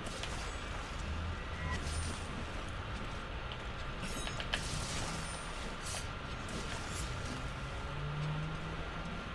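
Steam hisses and roars in bursts.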